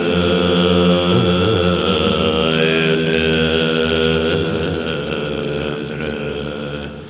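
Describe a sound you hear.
Many men chant together in low, steady voices in a large echoing hall.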